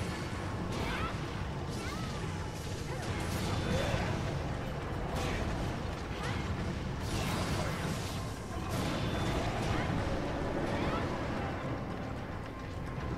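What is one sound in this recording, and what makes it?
A huge beast growls and rumbles deeply.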